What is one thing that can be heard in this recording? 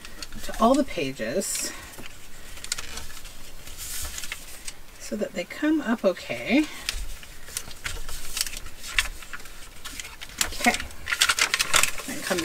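Paper rustles and crinkles as it is folded and creased.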